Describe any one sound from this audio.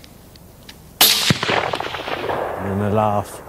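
A rifle shot cracks loudly and echoes away.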